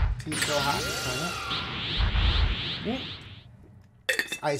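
Video game sound effects chime and jingle.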